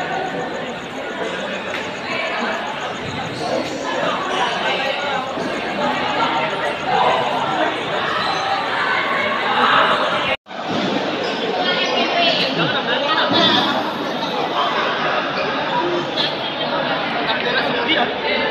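A crowd of people talks and chatters nearby.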